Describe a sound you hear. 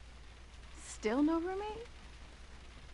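Another young girl asks a question in a bright voice.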